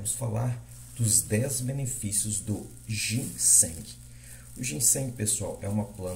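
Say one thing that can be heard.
A plastic bag crinkles as a hand handles it.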